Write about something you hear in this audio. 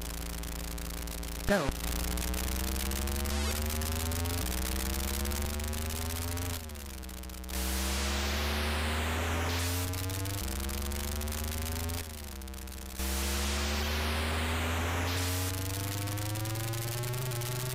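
A buzzy electronic car engine revs up and down, rising in pitch as it speeds up.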